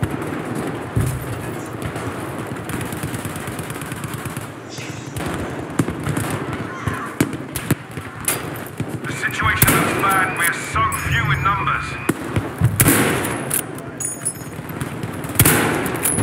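Gunshots crack and boom, echoing off the walls.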